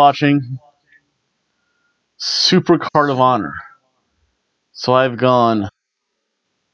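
A middle-aged man talks calmly and close to a microphone, in short bursts.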